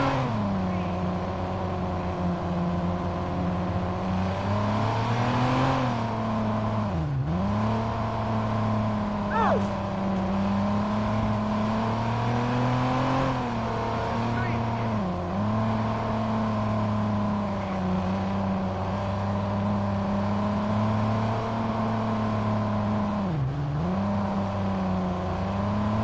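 A car engine hums steadily, its pitch dipping briefly as it slows and rising again as it speeds up.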